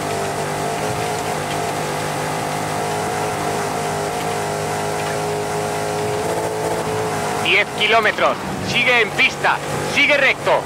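A rally car engine drones steadily at high revs.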